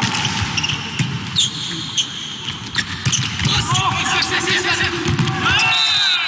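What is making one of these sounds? Players hit a volleyball with sharp smacks.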